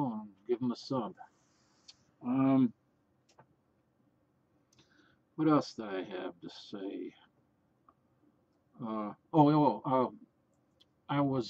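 A middle-aged man talks calmly and close to the microphone, in short bursts with pauses.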